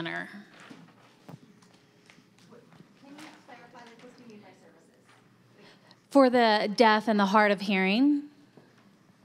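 A woman speaks through a microphone in a large room.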